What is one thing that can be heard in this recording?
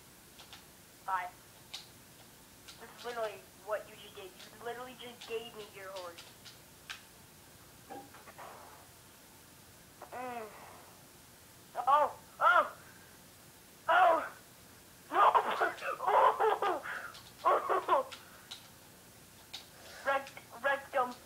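Video game sound effects chirp and bleep in short bursts from a television speaker.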